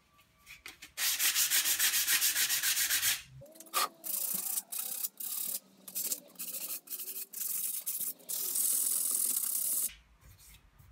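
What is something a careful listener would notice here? Metal plates scrape and slide against a metal frame.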